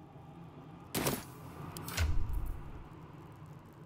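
Game menu sounds click and swish as a menu opens.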